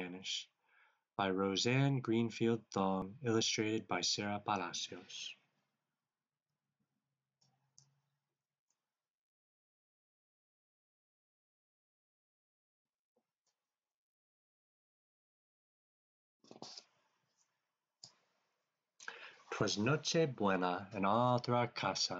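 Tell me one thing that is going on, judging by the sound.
A man reads aloud expressively over an online call.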